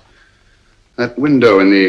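A middle-aged man speaks briskly.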